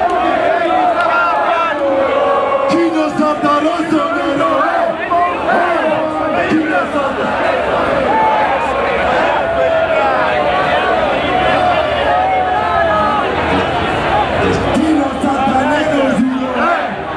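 A large crowd of men and women chants and sings loudly outdoors.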